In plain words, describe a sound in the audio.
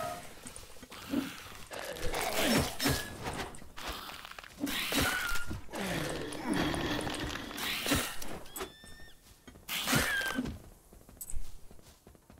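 Blows land with sharp thuds, again and again.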